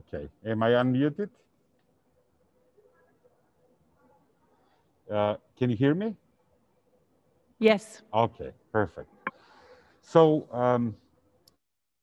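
A man speaks calmly through an online call, in short phrases with pauses.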